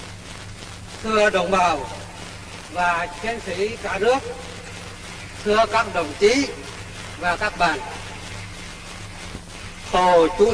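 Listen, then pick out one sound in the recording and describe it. A man speaks slowly and formally into a microphone.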